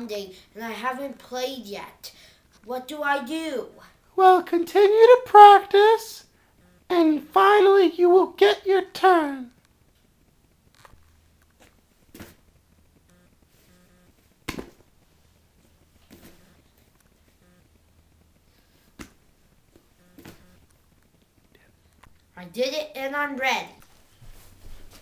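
A boy talks with animation close by.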